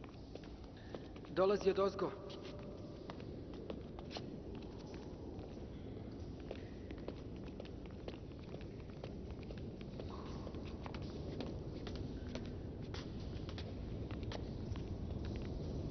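Footsteps tap softly on a hard floor.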